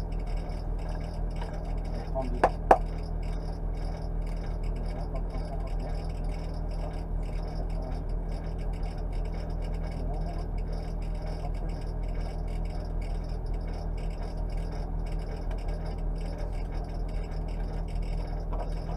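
A man talks calmly close by, muffled by a helmet.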